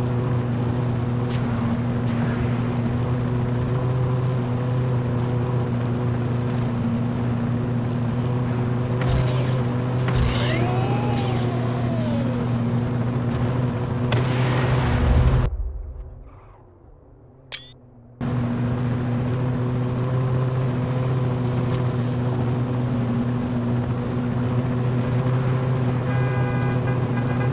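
Race car engines idle with a steady low hum.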